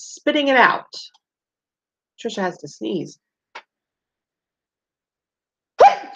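A woman reads aloud expressively through a microphone, close by.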